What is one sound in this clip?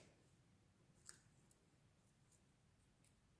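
Paper crinkles softly as it is folded by hand.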